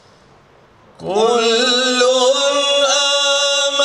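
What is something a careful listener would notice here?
A man chants in a long, drawn-out melodic voice through a microphone.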